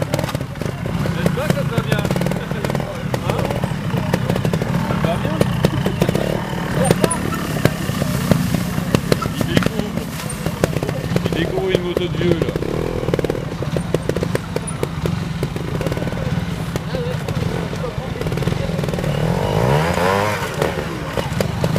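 A motorbike engine revs and sputters up close.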